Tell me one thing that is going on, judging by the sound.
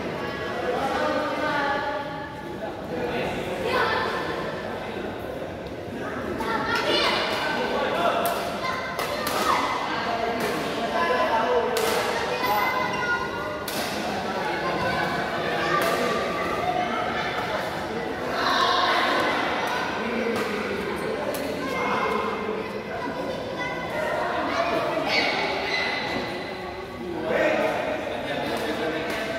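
Shuttlecocks are struck with sharp pops of rackets.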